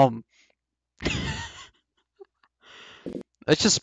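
A young man laughs briefly into a close microphone.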